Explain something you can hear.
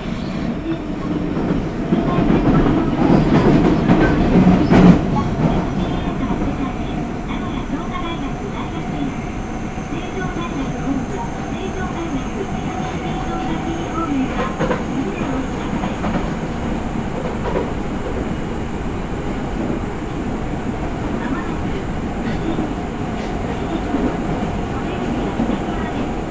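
An electric train hums steadily while standing still.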